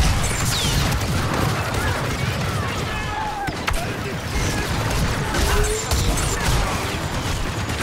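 Sparks crackle from blaster hits.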